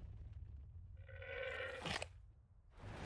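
A llama lets out a loud, wavering bleat.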